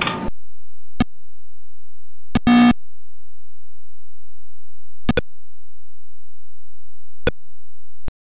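A game beeps in short, sharp blips as a ball bounces.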